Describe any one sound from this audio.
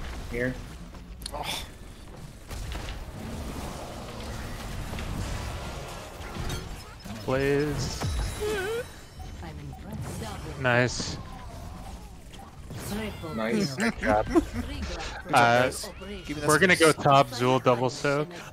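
Fantasy battle effects crackle, whoosh and thud in a fast fight.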